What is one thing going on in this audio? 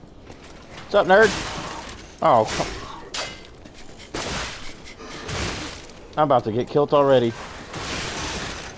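Blades swish and clash in a fight.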